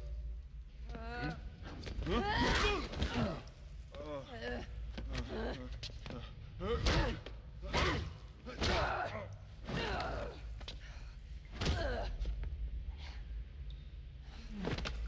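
A woman speaks with animation, close by.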